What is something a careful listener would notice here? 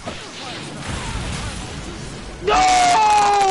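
A fiery blast roars.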